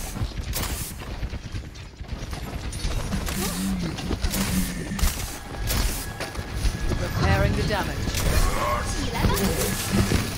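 Video game guns fire in quick bursts of shots.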